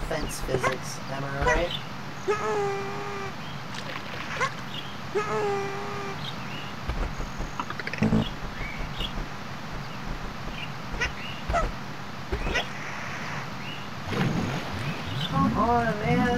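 Short cartoonish chirps sound as a game character jumps.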